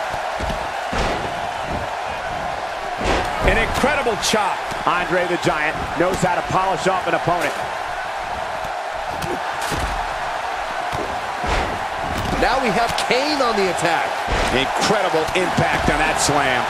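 Heavy bodies slam onto a wrestling mat with dull thuds.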